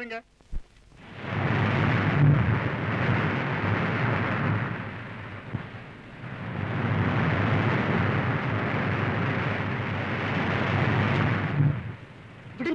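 Waves wash and break steadily on a shore.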